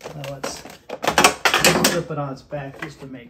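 A plastic cover rattles and scrapes as it is pulled off.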